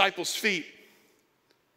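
A man speaks briefly over a microphone in a large echoing room.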